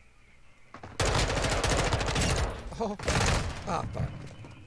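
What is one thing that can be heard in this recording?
Gunfire rattles loudly in quick bursts.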